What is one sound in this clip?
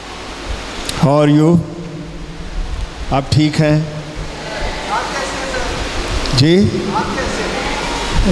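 An elderly man speaks with animation through a microphone and loudspeakers.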